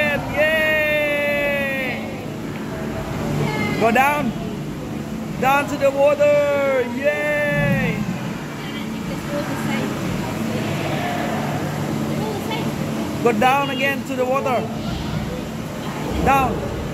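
Shrill creature cries ring out from loudspeakers in bursts.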